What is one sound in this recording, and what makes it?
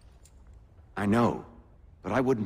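A second man answers in a low, serious voice.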